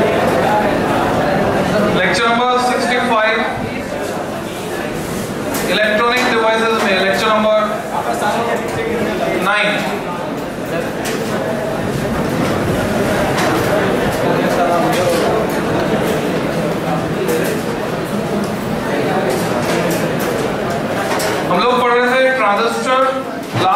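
A man lectures loudly to a room, his voice carrying with a slight echo.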